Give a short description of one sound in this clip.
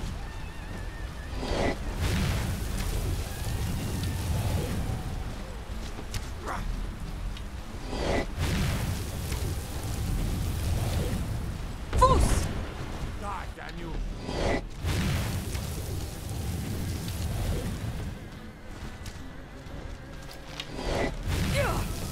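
A deep rumble of wingbeats and breath fills the air.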